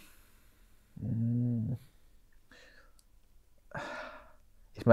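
A man speaks calmly and close by, with short pauses.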